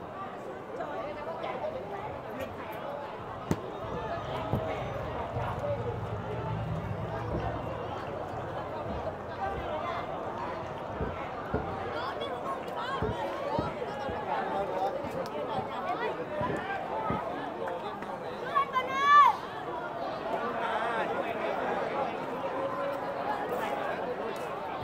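A crowd of men and women chatters steadily outdoors.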